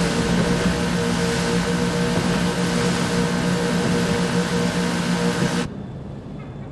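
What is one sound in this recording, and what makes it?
A boat engine roars steadily as a boat speeds over water.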